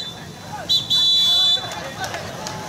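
A referee's whistle blows sharply twice.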